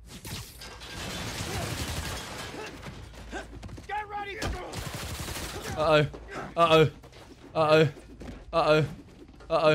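Game punches and thuds land during a brawl.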